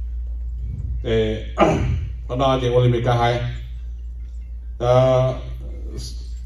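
A man speaks loudly through a microphone and loudspeakers, in short phrases with pauses.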